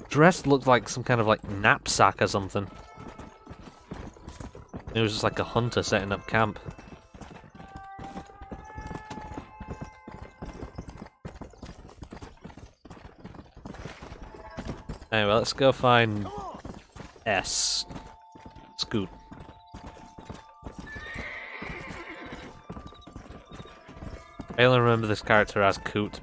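A horse gallops with rapid hoofbeats on dry ground.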